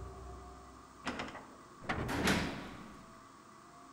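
A heavy metal door creaks slowly open.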